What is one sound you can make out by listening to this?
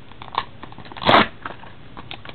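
A plastic case snaps open with a sharp click.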